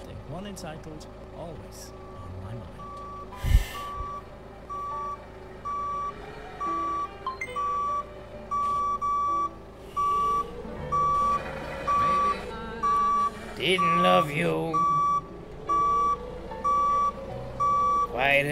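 A forklift engine hums, rising and falling.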